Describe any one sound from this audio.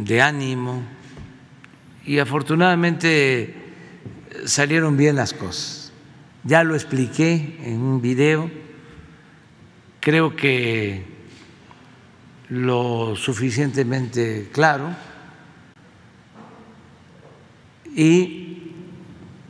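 An elderly man speaks slowly and deliberately into a microphone, with long pauses.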